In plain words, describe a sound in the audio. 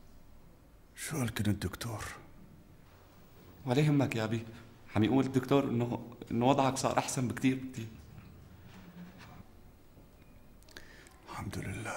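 An elderly man speaks weakly and hoarsely, close by.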